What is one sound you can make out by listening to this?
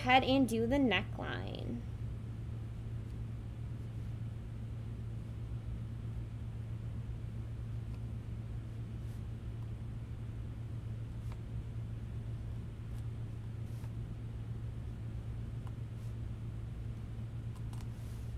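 A plastic tool scrapes softly across a stiff surface.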